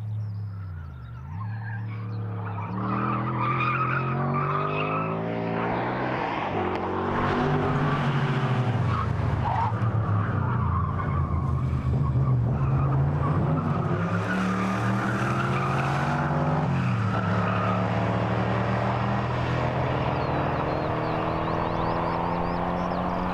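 A sports car engine roars and revs through the gears.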